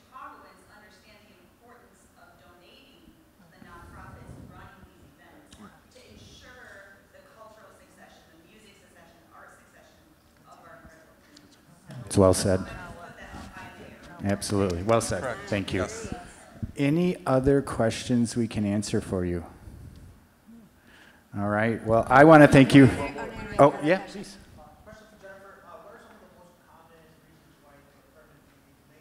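A man speaks calmly into a microphone, heard over loudspeakers in a large hall.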